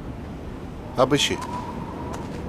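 A man says a few short words.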